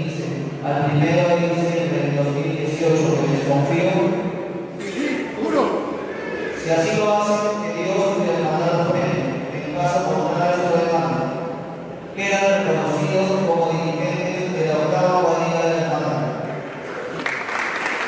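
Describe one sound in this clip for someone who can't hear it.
A group of men sings together through a microphone in an echoing hall.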